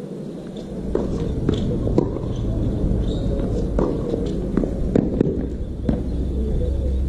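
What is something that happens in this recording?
Tennis rackets strike a ball back and forth in a rally.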